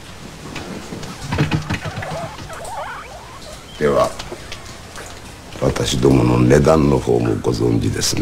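A middle-aged man speaks slowly and calmly, close by.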